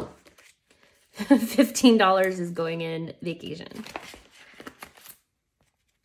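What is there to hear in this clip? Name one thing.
A plastic pouch crinkles.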